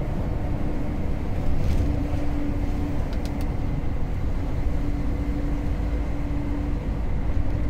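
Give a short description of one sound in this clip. A truck engine drones steadily from inside the cab.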